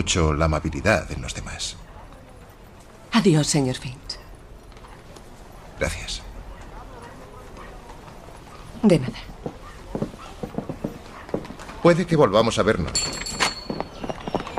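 A man speaks in a calm, amused voice close by.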